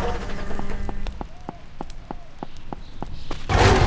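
Hooves clop on pavement.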